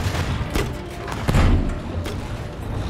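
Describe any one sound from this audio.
Explosions boom in a game.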